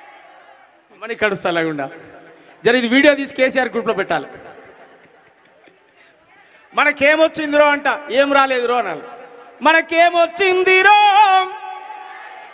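A young man speaks loudly and with animation through a microphone and loudspeakers, with echo.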